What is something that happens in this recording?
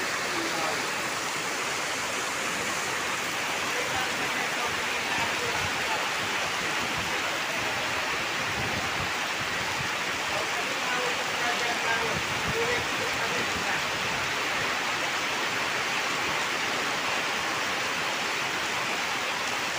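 Heavy rain pours down on pavement and puddles.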